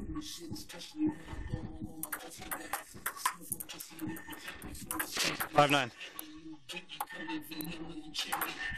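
A ping pong ball clicks sharply back and forth on a table and paddles.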